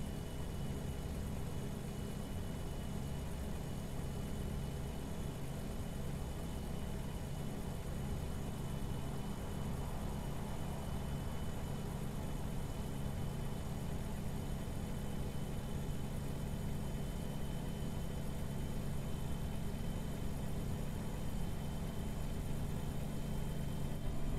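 A truck engine hums steadily at cruising speed.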